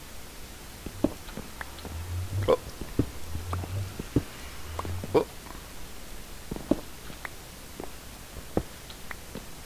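A pickaxe chips at blocks with short, sharp knocks.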